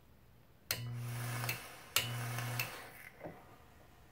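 A small device buzzes in two short bursts.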